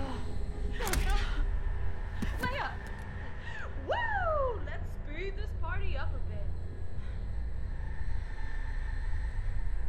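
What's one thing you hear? A young woman whimpers and pleads in fear.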